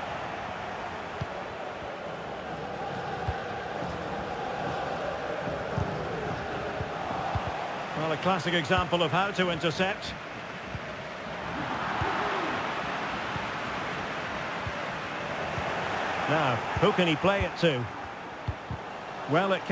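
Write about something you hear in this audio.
A stadium crowd murmurs and roars steadily.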